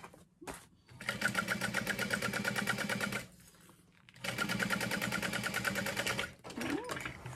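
A sewing machine stitches in quick, rapid bursts.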